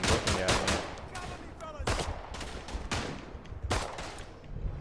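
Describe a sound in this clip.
Rifle shots crack one after another.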